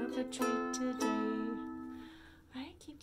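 A ukulele strums a chord that rings out.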